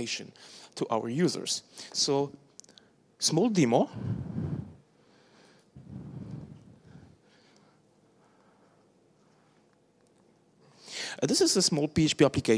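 A man speaks into a microphone, pausing between phrases.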